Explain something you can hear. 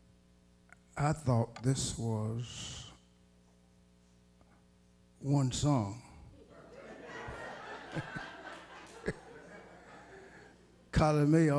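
A man speaks with feeling into a microphone in an echoing hall, pausing between phrases.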